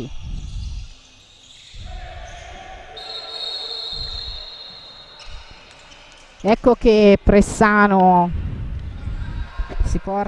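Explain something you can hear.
A ball thumps as it bounces on the floor.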